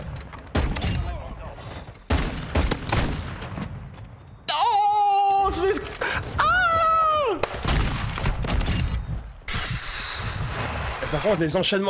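A young man talks excitedly into a close microphone.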